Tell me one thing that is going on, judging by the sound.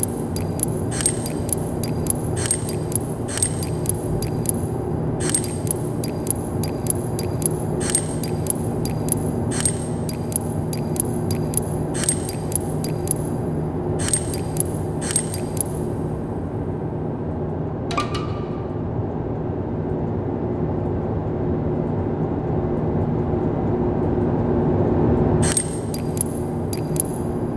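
Metal lock dials click sharply as they are turned.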